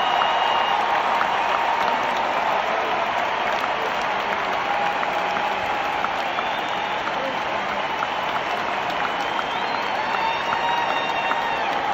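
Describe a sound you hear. Live music plays loudly through big loudspeakers in a wide open space.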